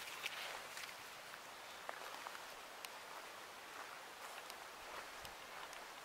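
Dry wood cracks and snaps as a hand pulls at a fallen branch.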